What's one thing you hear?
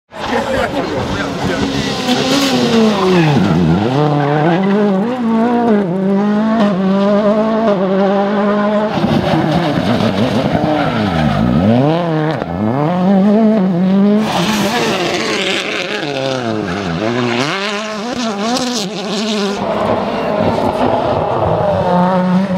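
Rally car engines roar past at high revs, rising and falling in pitch as they pass.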